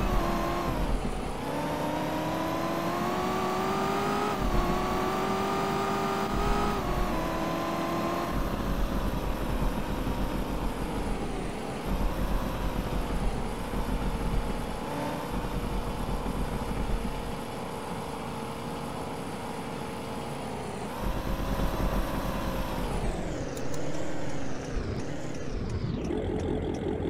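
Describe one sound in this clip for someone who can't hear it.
A car engine hums and revs, rising and falling in pitch as the car speeds up and slows down.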